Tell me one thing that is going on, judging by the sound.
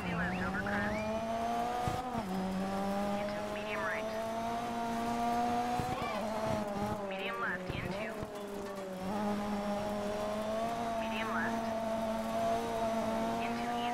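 A rally car engine roars at high revs, dipping briefly with each gear change.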